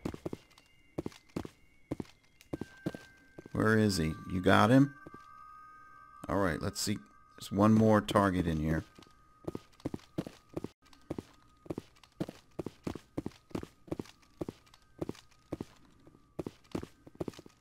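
Armored boots run across a hard floor.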